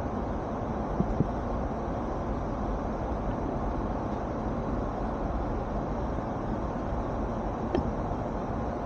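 A small plastic switch clicks as it slides.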